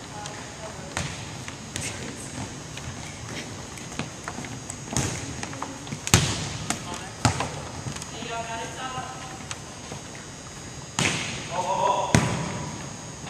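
A ball bounces on a hard floor in a large echoing gym.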